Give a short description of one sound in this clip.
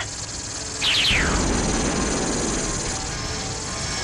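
A laser blast fires with a sharp zap and a roar.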